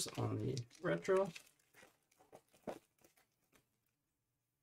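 A foil card pack crinkles and tears open.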